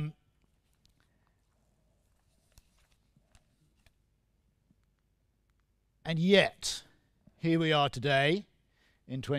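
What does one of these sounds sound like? A middle-aged man speaks calmly through a headset microphone, with pauses.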